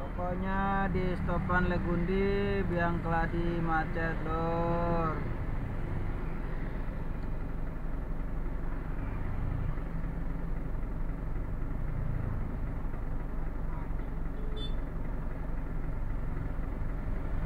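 Motorcycles pass by close.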